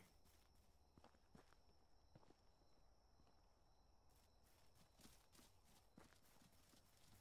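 Footsteps crunch slowly on a leafy forest floor.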